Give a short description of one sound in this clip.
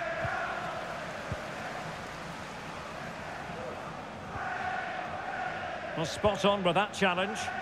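A stadium crowd chants and cheers steadily.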